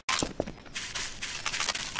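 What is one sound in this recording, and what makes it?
A rifle fires a short burst of shots.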